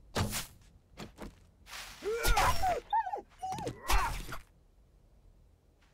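A knife cuts into an animal carcass with wet slicing sounds.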